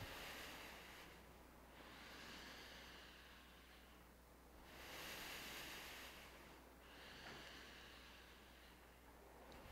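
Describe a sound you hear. An elderly man breathes slowly and deeply in and out, close by.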